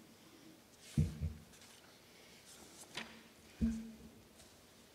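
Piano notes sound softly, one at a time.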